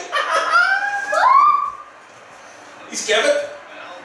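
A man and a boy slap hands in a high five.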